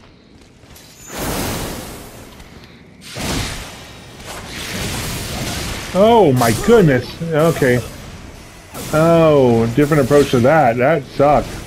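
Sword blows whoosh and clash in a fight.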